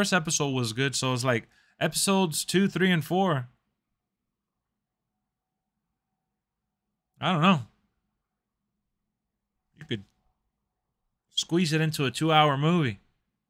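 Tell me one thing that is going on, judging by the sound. A man talks with animation close to a microphone, pausing now and then.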